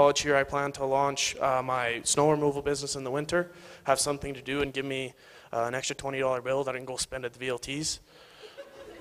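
A young man speaks through a microphone in a large echoing hall.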